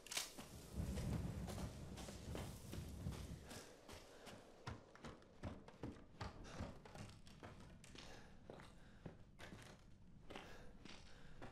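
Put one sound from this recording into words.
Footsteps crunch and creak over a debris-strewn wooden floor.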